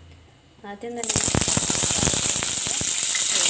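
Leaves sizzle and crackle loudly as they drop into a hot pan.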